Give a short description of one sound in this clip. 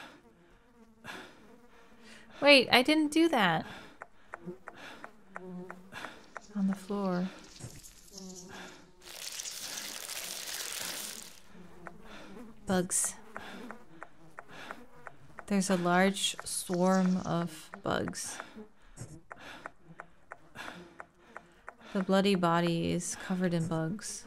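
A young woman talks into a microphone close up, with animation.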